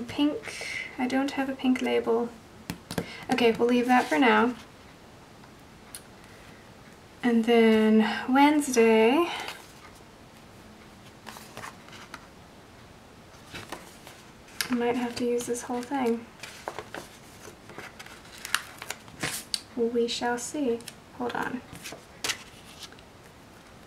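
Paper sheets rustle softly as they are handled.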